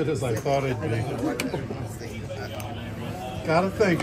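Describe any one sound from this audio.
Casino chips click together on a table.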